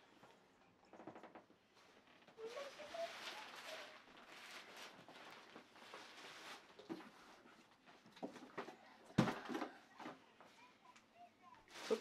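Bare feet pad on a carpet.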